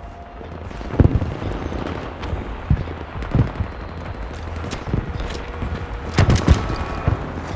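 A rifle fires with sharp booming shots.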